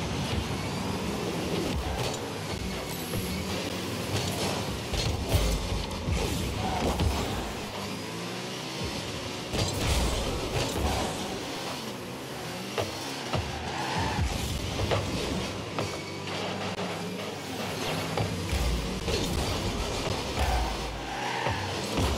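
A car engine roars and boosts steadily throughout.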